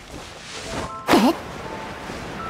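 Something splashes heavily into water.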